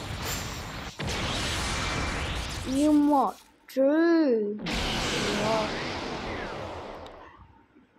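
A crackling energy surge roars and whooshes.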